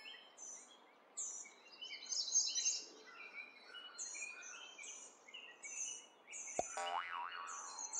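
Short, bright cartoon sound effects chime and pop again and again.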